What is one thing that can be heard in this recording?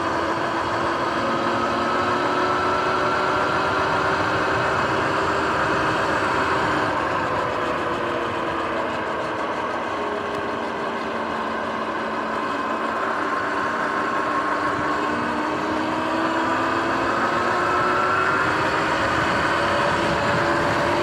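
Wind rushes over the microphone while riding.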